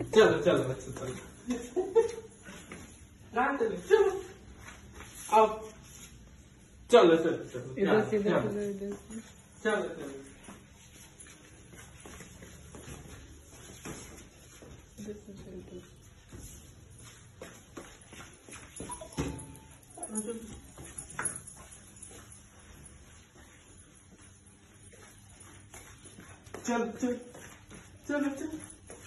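A small dog barks sharply indoors.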